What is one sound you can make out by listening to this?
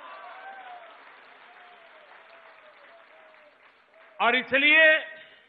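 A large crowd cheers in a big echoing hall.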